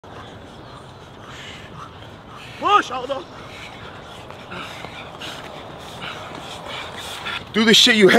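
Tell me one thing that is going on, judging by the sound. Footsteps crunch on a dirt path as people jog uphill.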